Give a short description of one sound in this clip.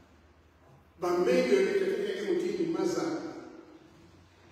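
An elderly man sings in a deep voice in a large echoing hall.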